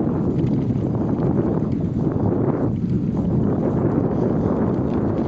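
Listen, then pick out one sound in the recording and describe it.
Tyres roll steadily over a paved path.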